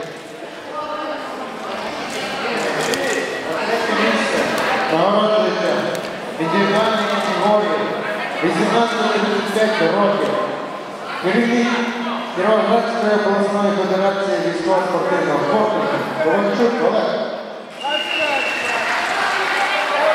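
A crowd of men shouts and cheers in a large echoing hall.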